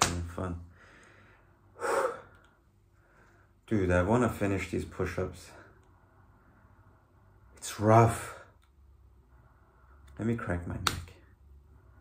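A young man speaks close by in short, strained bursts with pauses between them.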